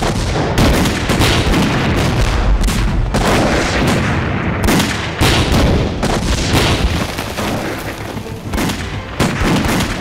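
Explosions boom and roar one after another.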